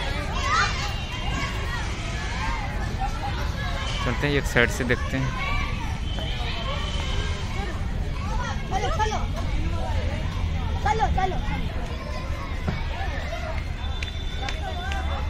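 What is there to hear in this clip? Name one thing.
Children shout and chatter nearby outdoors.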